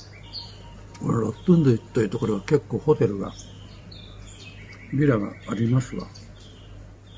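An elderly man speaks calmly into a clip-on microphone, close by.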